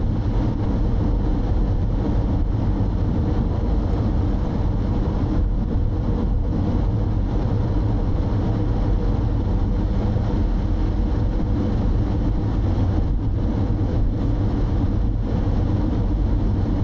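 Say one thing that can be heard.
Road noise rumbles steadily from inside a moving car.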